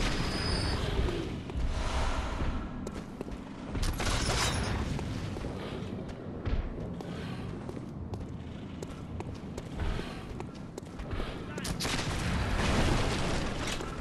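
Footsteps clatter on stone cobbles.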